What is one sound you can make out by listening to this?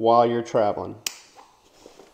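A plastic buckle clicks shut.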